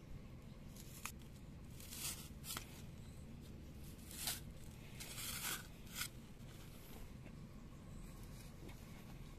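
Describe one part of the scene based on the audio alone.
A plastic sheet crinkles and rustles as it is cut and pulled.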